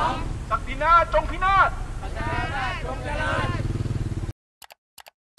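A crowd of protesters chants loudly outdoors.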